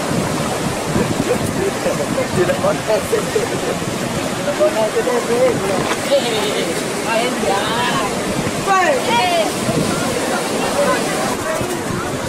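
Men talk and call out close by, outdoors.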